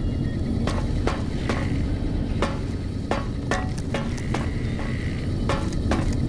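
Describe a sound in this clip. Footsteps clank on a metal floor at a steady walking pace.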